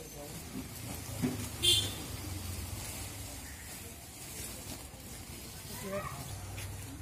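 Men talk nearby in a crowd.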